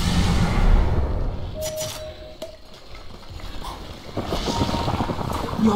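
Magical combat effects whoosh and crackle in a video game.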